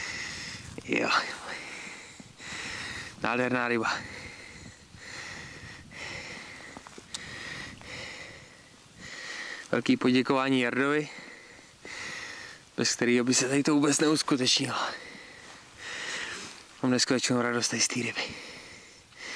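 A young man talks close by.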